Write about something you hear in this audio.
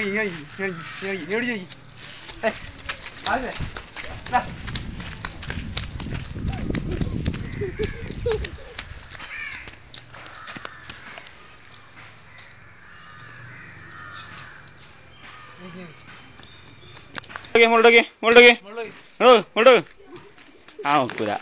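A young child talks loudly close by.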